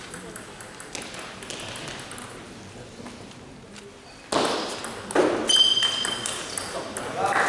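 A table tennis ball clicks rapidly back and forth off paddles and a table.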